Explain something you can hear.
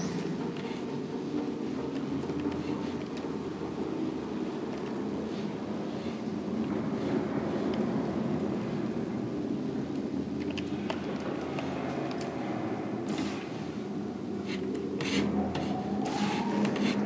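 A device hums steadily and low.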